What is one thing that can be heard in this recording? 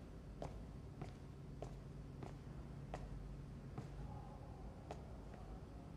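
Footsteps tap on a hard floor at an even, unhurried pace.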